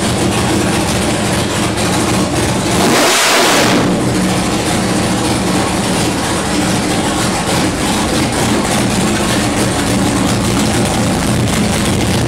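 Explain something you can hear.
A powerful engine idles loudly with a steady, throbbing rumble.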